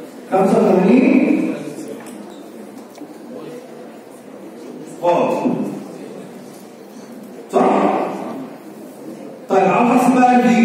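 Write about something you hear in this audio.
A man speaks calmly in short bursts, like a lecturer.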